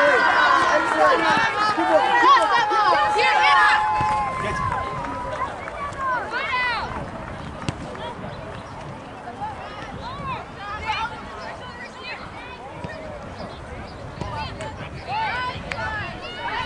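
Young women shout to each other in the distance outdoors.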